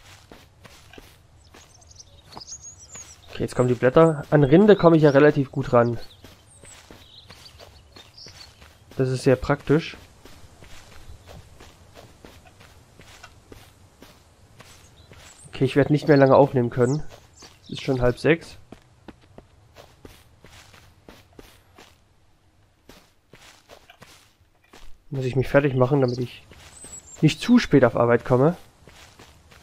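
Footsteps rustle steadily through grass and leaves.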